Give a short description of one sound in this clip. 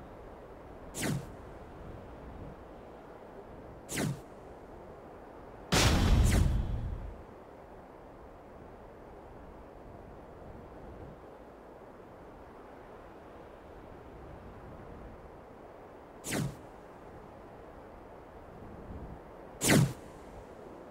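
A short electronic beep sounds a few times.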